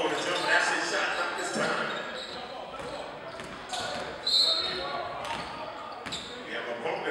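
Spectators call out in an echoing gym.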